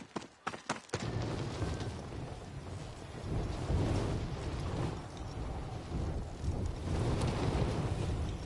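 Wind rushes steadily during a fall through the air.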